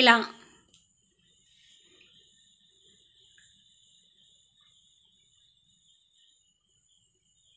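Hot oil sizzles and bubbles softly around frying food.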